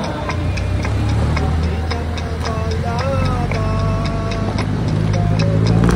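A jeepney engine rumbles close by.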